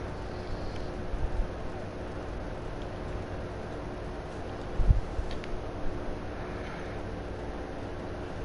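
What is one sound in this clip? Heavy footsteps pound and scrape up a stone wall.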